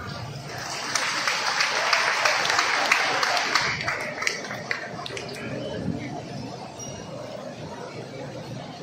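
A crowd chatters and murmurs.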